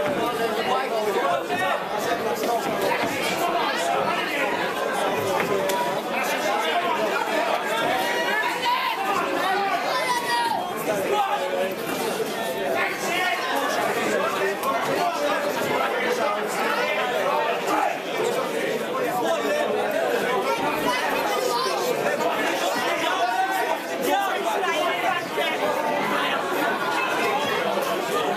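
A crowd of men and women chatter and shout loudly in a large echoing hall.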